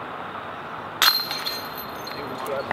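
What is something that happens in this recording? A disc strikes the chains of a disc golf basket and rattles them.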